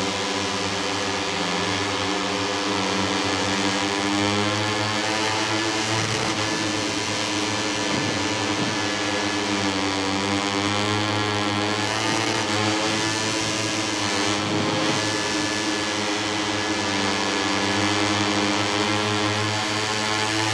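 A motorcycle engine roars loudly, its pitch rising and falling as it shifts gears.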